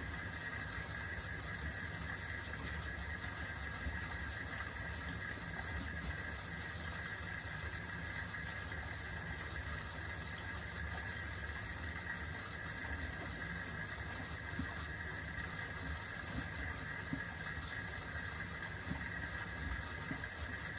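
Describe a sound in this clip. Wet laundry sloshes and tumbles inside a washing machine drum.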